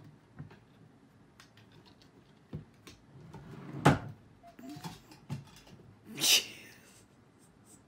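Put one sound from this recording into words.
A cat knocks against a wooden drawer as it climbs.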